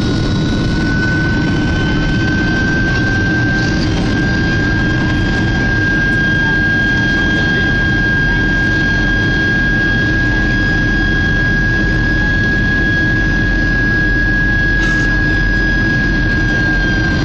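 Air rushes past the cabin in a low, steady rumble.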